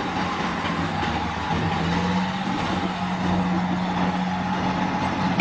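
A diesel truck engine rumbles steadily nearby.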